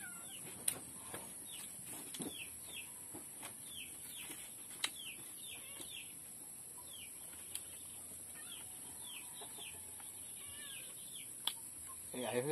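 Dry leaves crackle and rustle as a man peels them open by hand.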